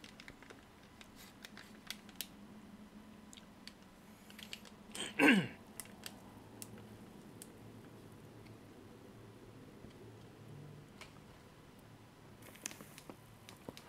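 Flames crackle softly.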